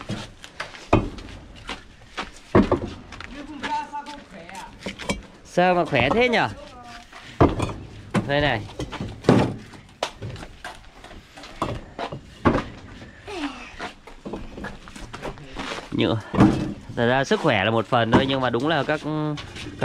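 Clay bricks clink and knock as they are stacked.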